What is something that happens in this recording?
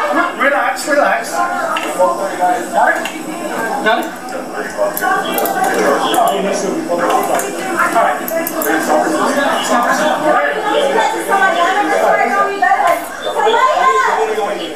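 Several men talk loudly over one another close by.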